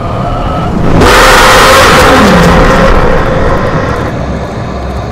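A loud, harsh jumpscare screech blasts suddenly and then fades away.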